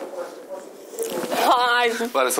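A young woman speaks softly and emotionally close by.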